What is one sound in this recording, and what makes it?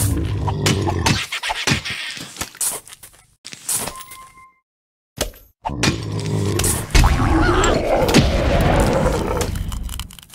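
Clay vases shatter one after another.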